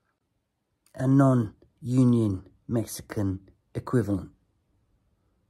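A man speaks slowly in short phrases, close up.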